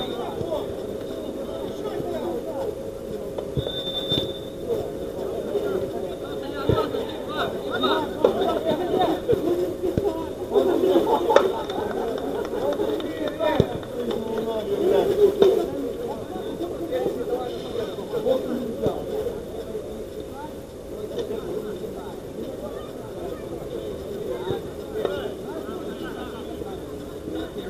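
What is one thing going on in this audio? Men shout and call to each other across an outdoor pitch.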